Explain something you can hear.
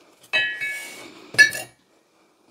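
A heavy metal axe head is set down on cardboard with a dull thud.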